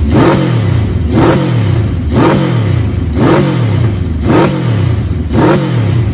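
An inline-four motorcycle idles between blips of the throttle.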